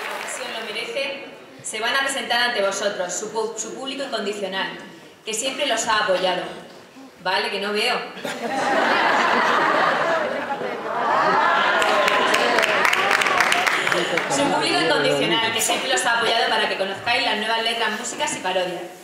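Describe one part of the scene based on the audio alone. A woman reads aloud calmly into a microphone.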